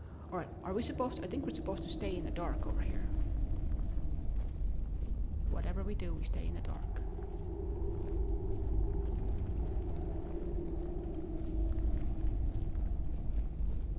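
A torch flame crackles and hisses steadily.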